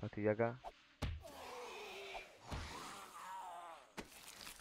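A wooden club strikes a body with heavy thuds.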